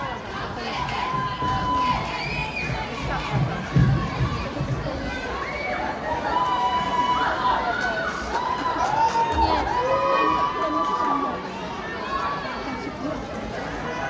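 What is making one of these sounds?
Music plays through loudspeakers in a large echoing hall.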